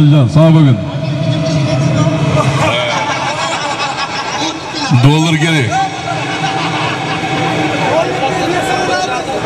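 A large crowd of men shouts and calls out outdoors.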